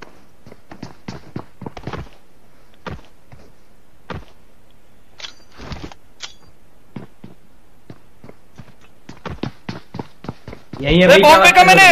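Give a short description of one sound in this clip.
Footsteps patter quickly on a hard surface.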